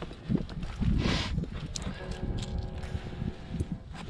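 Hands scrape on rough rock.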